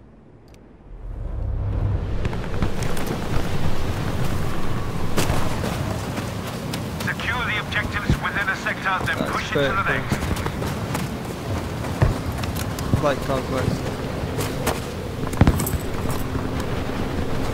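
Strong wind howls steadily through a snowstorm.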